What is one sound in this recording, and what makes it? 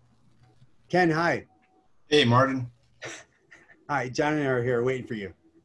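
An older man speaks calmly over an online call, in short bursts.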